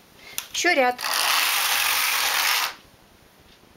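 A knitting machine carriage slides across the needle bed with a rushing clatter.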